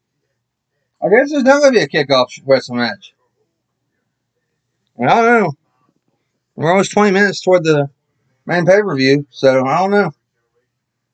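A man speaks close to the microphone in short bursts, with pauses between.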